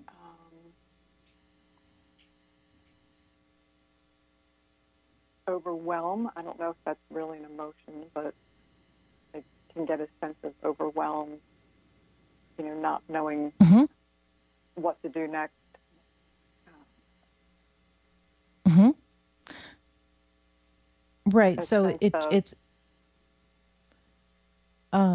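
A woman speaks calmly through a microphone, in short bursts with pauses.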